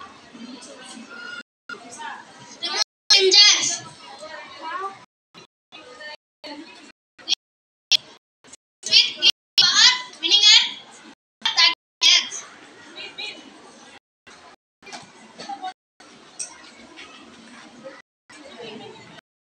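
Young girls speak with animation, close by.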